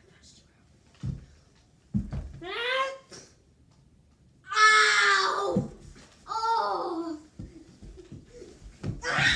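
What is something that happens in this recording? Thuds sound as a young boy rolls and tumbles on the floor.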